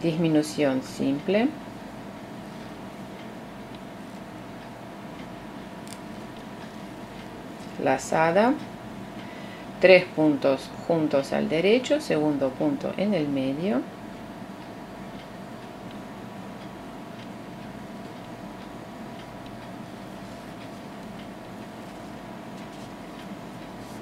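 Wooden knitting needles click and scrape softly against yarn.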